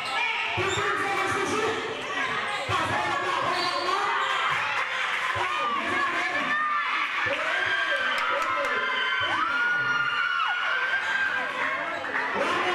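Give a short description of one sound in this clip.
A crowd of young spectators chatters and shouts in a large echoing hall.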